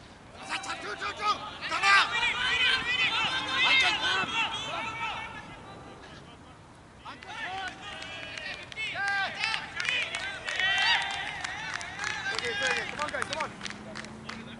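Several men shout and cheer loudly outdoors.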